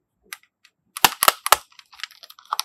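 A plastic case clicks open.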